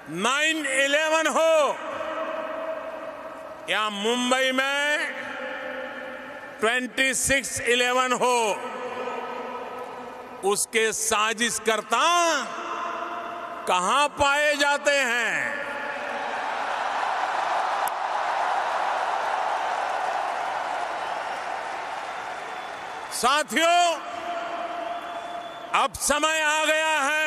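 A man speaks forcefully through a loudspeaker in a large echoing space, in bursts.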